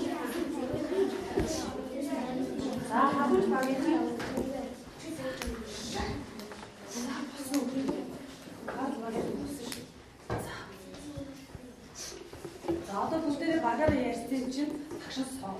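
Children murmur and chatter in the background.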